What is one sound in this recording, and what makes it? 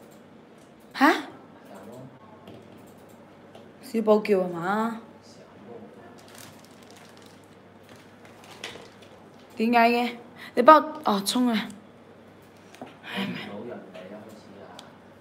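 A young woman speaks close by in short, animated bursts with pauses.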